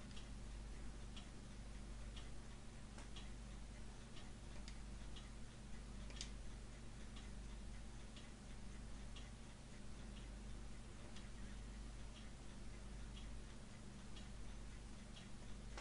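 Short soft blips tick as lines of dialogue text print out.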